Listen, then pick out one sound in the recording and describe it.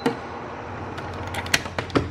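A knob clicks as it is turned.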